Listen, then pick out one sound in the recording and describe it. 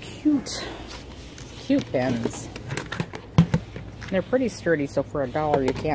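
A plastic basket knocks and rattles as a hand handles it.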